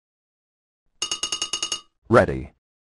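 Quick bright electronic chimes ring out in a rapid run.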